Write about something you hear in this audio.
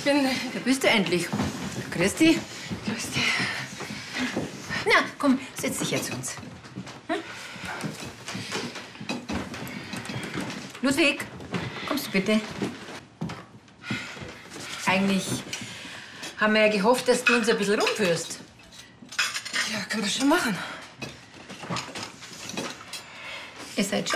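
An elderly woman talks with animation nearby.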